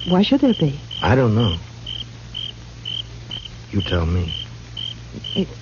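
A man speaks through an old radio.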